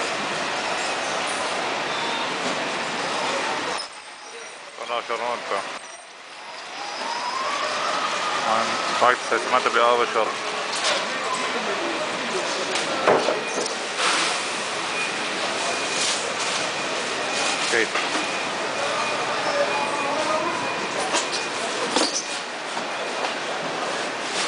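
Voices of men murmur throughout a large, echoing indoor space.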